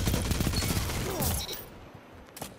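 Gunshots ring out from a rifle.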